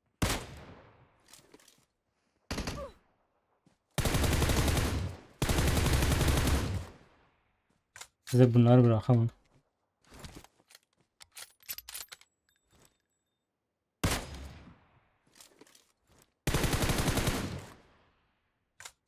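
Gunshots fire in rapid bursts, each with a ringing echo.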